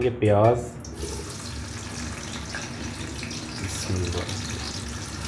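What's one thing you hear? Onions sizzle steadily as they fry in hot oil.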